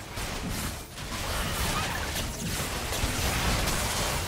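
Magic blasts and explosions crackle loudly in a fight.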